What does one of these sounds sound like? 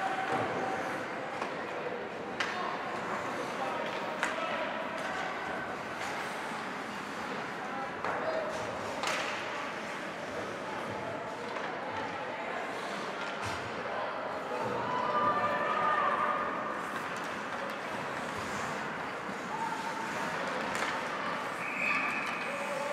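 A crowd of spectators murmurs and calls out in a large echoing rink.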